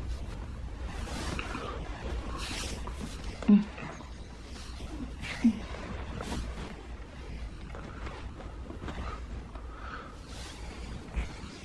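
A woman breathes heavily close by.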